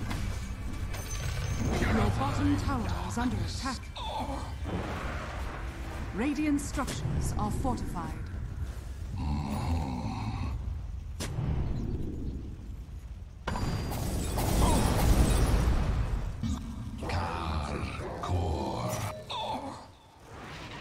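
Spell effects and magic blasts whoosh and crackle in a game battle.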